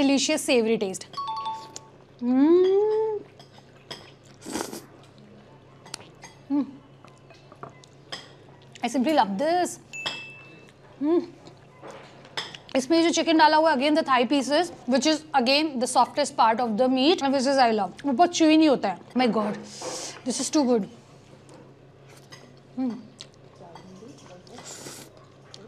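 A young woman slurps noodles noisily.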